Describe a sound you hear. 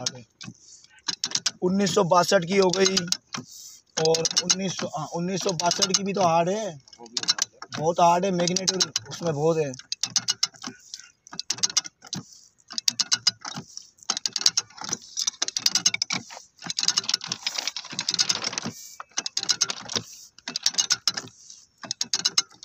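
A hand-cranked ratchet drill bores into a steel rail.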